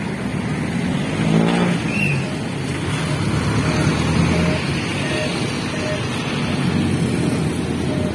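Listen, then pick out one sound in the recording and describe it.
A jeepney engine rumbles as it pulls up close and drives off.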